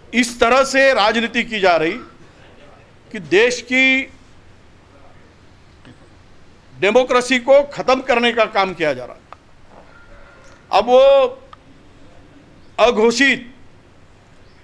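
A middle-aged man speaks forcefully into microphones close by, in short bursts with pauses.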